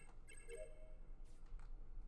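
A game chime rings to mark a finished task.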